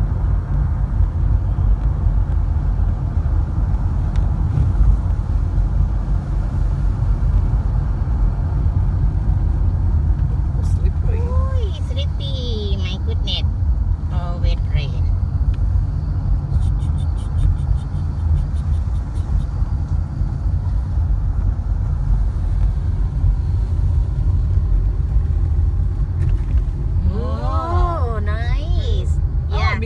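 Tyres hum steadily on a road.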